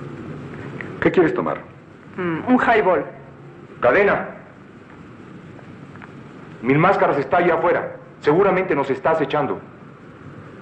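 Men talk nearby in short, lively phrases.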